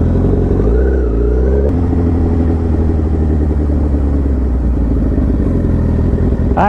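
A motorcycle engine revs and shifts gears up close.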